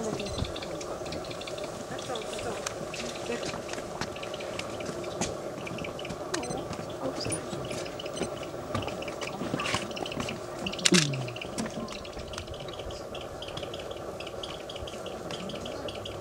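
Young birds squeal and chirp in a nest.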